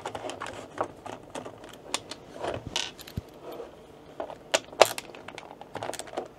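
A plastic case knocks and rattles as it is handled.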